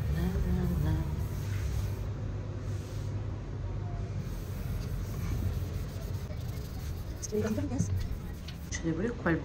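A sponge rubs and squeaks against a ceramic sink.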